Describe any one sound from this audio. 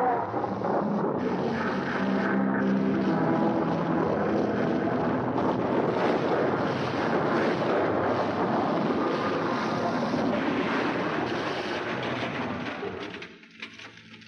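Rapid gunfire crackles and pops.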